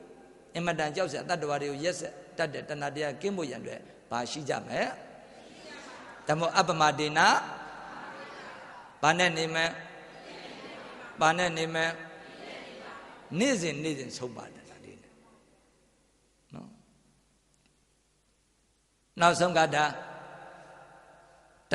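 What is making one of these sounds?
Speech echoes briefly in a large hall after each phrase.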